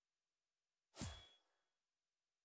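A short menu click sounds as a selection changes.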